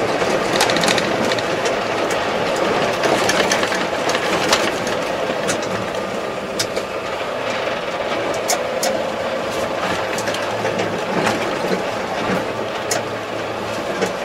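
A tractor cab rattles and clicks as the vehicle moves.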